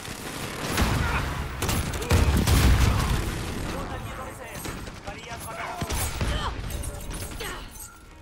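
Automatic gunfire rattles in quick bursts.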